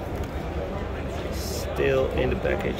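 A plastic blister pack crinkles as a hand handles it.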